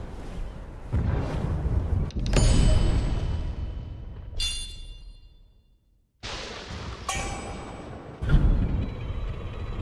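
Thunder cracks and rumbles deeply.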